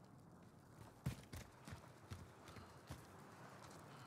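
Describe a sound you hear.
Footsteps crunch softly on rocky ground.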